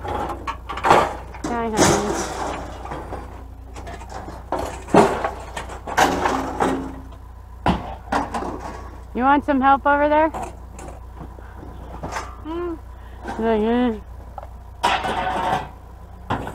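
Scrap metal pieces clank and rattle as they are handled.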